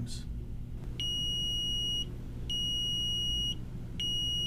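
An electronic device gives long, high beeps.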